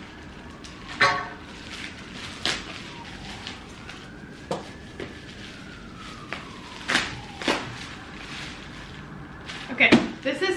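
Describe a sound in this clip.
A plastic mailer bag crinkles and rustles as it is torn open.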